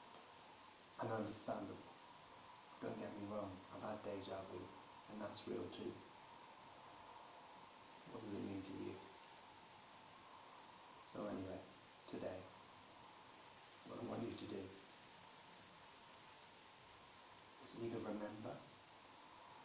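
A man speaks calmly and slowly close by, with long pauses.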